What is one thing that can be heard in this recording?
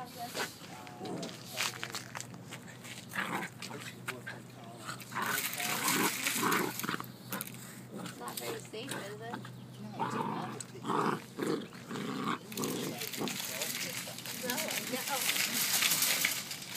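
Two puppies growl and snarl playfully while wrestling.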